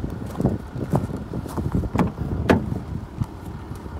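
A car door unlatches with a click and swings open.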